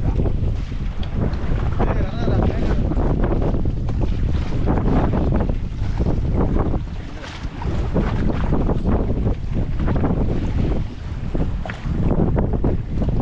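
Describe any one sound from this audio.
Waves slap against the side of a boat.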